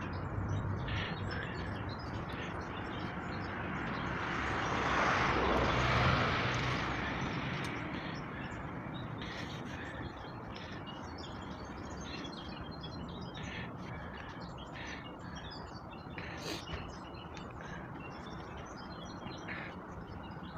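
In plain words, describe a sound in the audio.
Metal clanks and knocks sound across a construction site.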